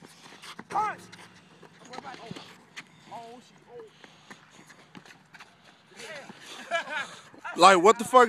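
A basketball bounces on asphalt.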